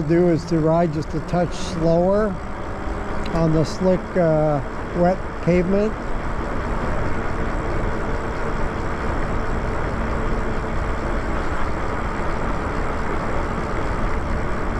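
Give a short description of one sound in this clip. Tyres hum on smooth pavement.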